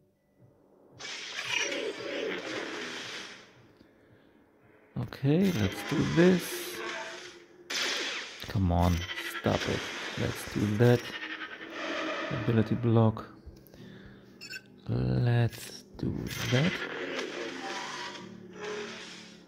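Laser guns fire in quick bursts.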